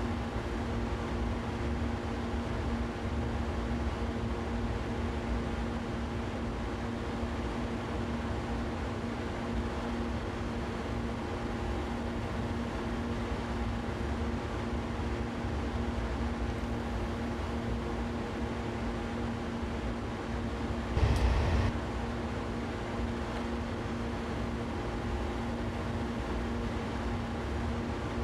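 An electric train motor hums steadily.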